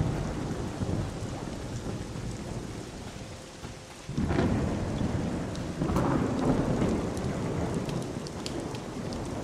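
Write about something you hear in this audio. Torch flames crackle softly.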